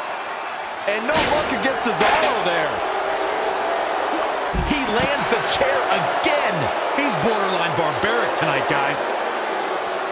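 Blows land with sharp smacks.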